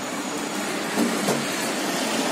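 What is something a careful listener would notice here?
A metal cup knocks against a pot.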